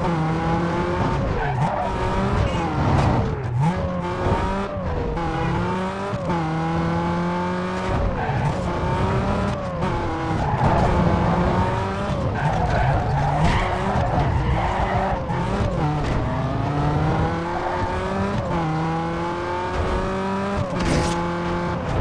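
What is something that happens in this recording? A car engine revs hard, rising in pitch and dropping with each gear change.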